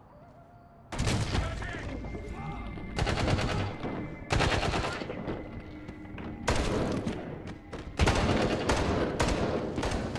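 Rifles fire loud bursts of gunshots inside a large echoing hall.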